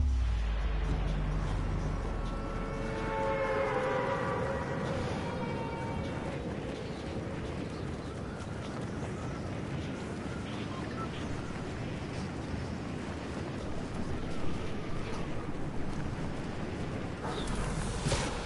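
Wind rushes loudly past during a freefall.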